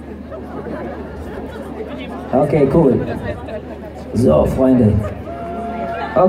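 A crowd chatters and murmurs close by.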